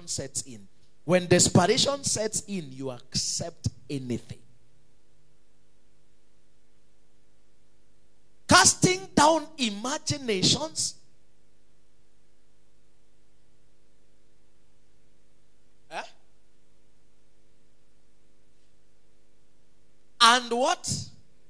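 A man preaches with animation through a microphone and loudspeakers, in bursts with long pauses.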